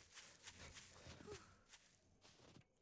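Footsteps crunch softly on snow.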